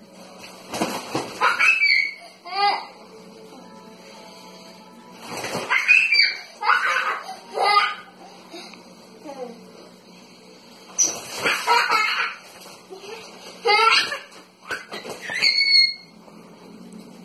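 A young child shrieks and squeals excitedly nearby.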